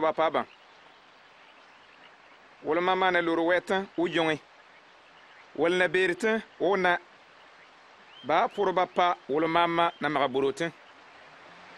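A man speaks calmly and clearly nearby, in short phrases with pauses.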